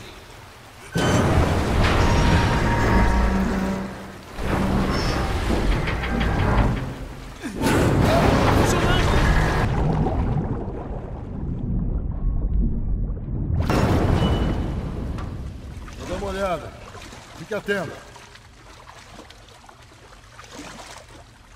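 Water splashes and sloshes as someone wades and swims.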